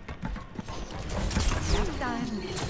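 A sleep dart hits with a magical whoosh.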